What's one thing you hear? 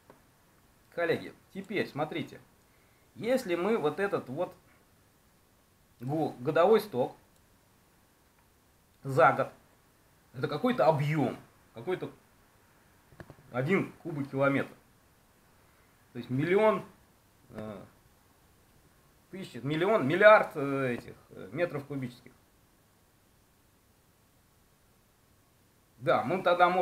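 A middle-aged man speaks calmly and with some animation, close to the microphone, in short bursts with pauses.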